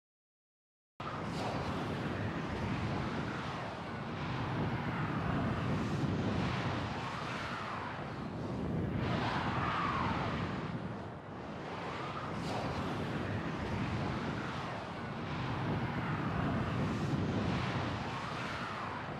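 Soft ambient music drones and swells slowly.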